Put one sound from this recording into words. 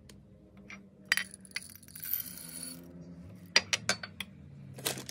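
Chocolate chips clatter as they tip into a glass bowl.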